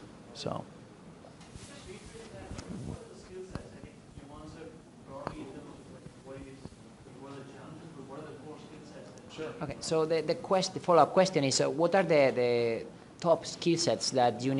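A man speaks calmly into a microphone, heard over loudspeakers in a room.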